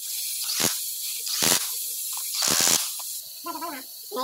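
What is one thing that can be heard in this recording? An impact wrench whirs and rattles in short bursts.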